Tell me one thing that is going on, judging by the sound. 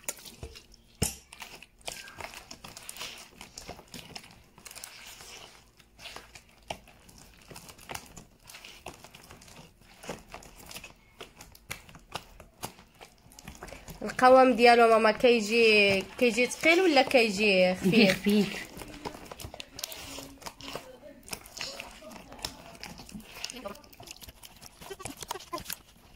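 A hand squishes and kneads soft, wet dough.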